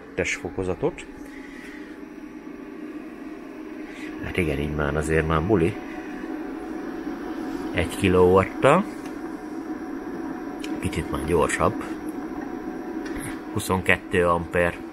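An electrical inverter hums steadily.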